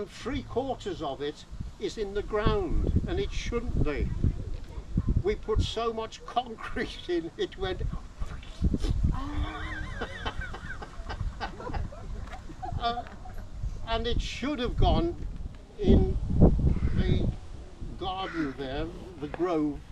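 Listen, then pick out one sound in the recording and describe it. An elderly man talks calmly outdoors.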